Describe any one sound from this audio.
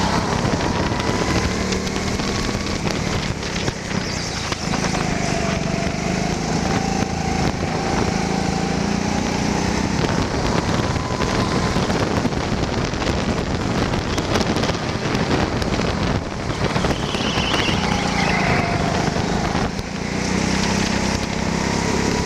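A go-kart engine buzzes loudly up close, rising and falling in pitch as it speeds up and slows down.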